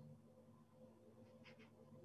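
A brush dabs on paper.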